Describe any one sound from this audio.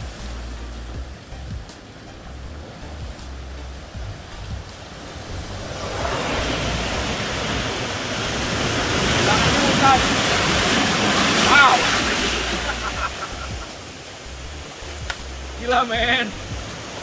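Waves wash and surge over rocks outdoors.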